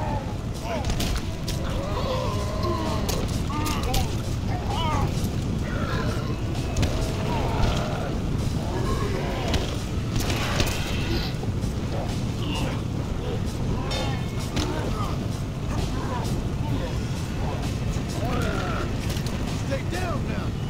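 A torch fire crackles and roars.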